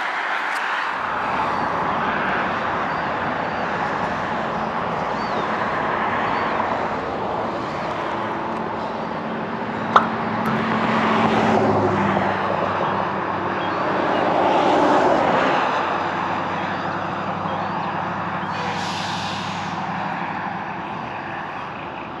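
A truck engine idles with a low hum.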